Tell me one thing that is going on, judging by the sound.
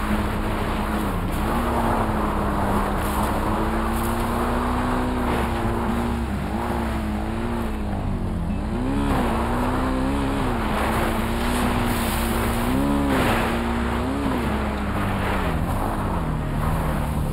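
Tyres crunch over grass and dirt.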